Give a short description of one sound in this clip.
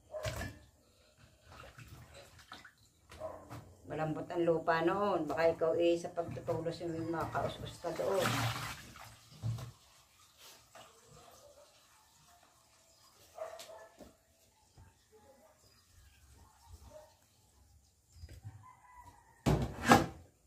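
Raw meat squelches and slaps in a metal basin.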